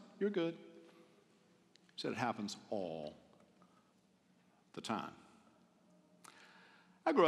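A middle-aged man speaks with animation into a microphone, in an echoing hall, pausing between phrases.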